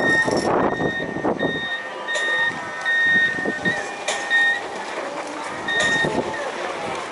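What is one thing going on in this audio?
An electronic warning alarm beeps in short repeated tones.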